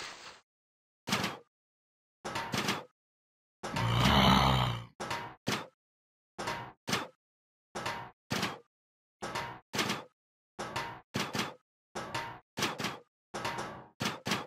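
Pea shooters fire with quick, regular popping shots.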